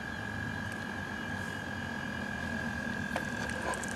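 A toad hops softly across damp soil.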